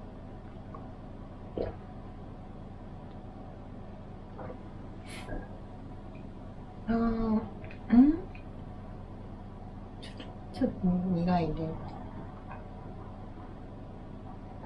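A young woman drinks from a carton with close gulps.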